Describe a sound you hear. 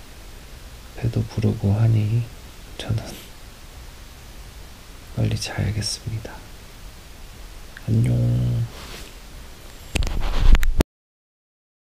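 A man talks close up in a hushed, playful voice.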